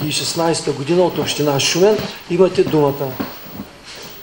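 A woman speaks to a room.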